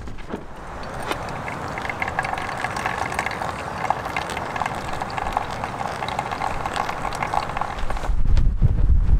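Water pours in a thin stream into a filter and trickles down.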